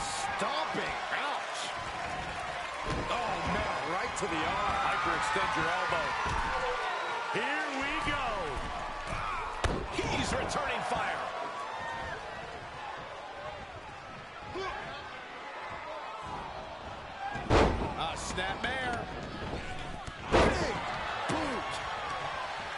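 A crowd cheers and roars throughout.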